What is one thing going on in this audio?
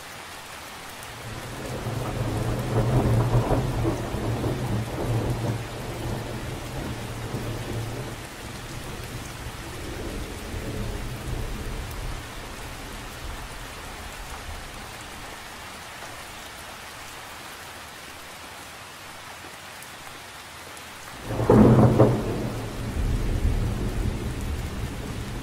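Rain patters steadily on a lake's surface.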